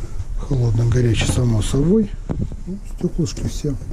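A glass lid clatters as it is lifted open.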